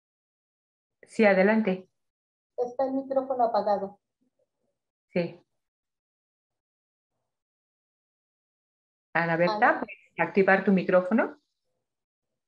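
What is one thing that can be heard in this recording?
An older woman speaks calmly in short bursts over an online call.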